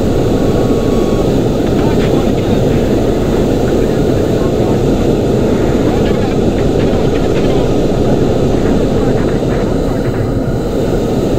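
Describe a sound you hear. A jet engine roars steadily from inside the cockpit.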